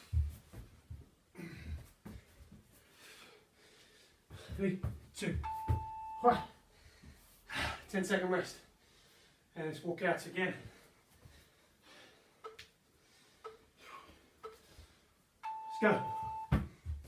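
Hands and feet thump on a floor mat.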